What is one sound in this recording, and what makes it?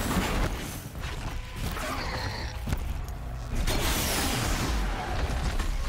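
Explosions and metallic clanks ring out.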